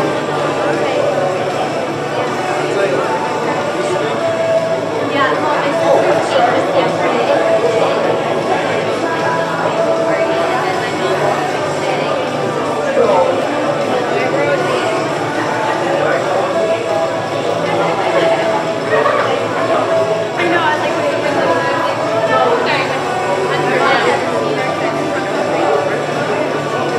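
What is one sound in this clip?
A crowd of men and women chatter at once in a large echoing hall.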